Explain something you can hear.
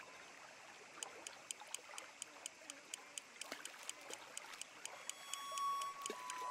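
A fishing reel clicks steadily as it is wound in.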